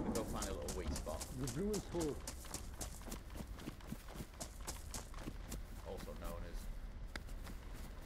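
Footsteps swish and crunch through tall grass.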